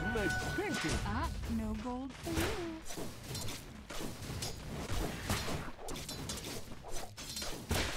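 Weapons clash and strike in a game fight.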